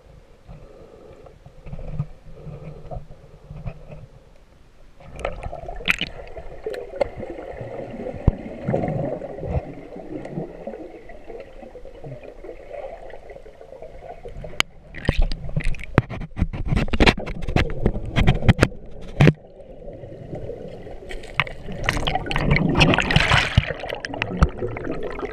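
Water swishes and gurgles around an underwater microphone.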